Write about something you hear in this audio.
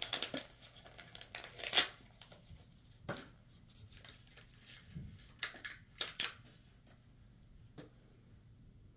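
Clothing rustles and handling noises knock close by.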